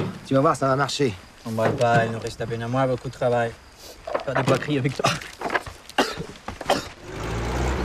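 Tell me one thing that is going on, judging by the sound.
A man speaks roughly and with strain close by.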